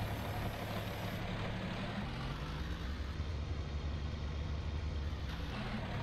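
A tractor's diesel engine rumbles steadily as it drives.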